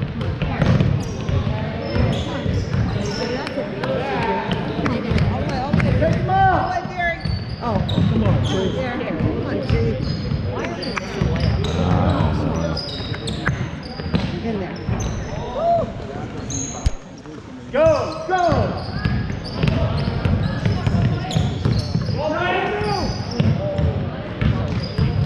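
Young players and spectators call out and shout across the echoing hall.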